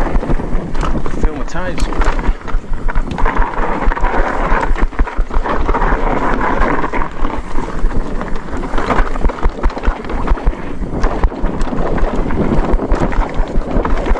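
Mountain bike tyres rumble and crunch over a rough dirt trail.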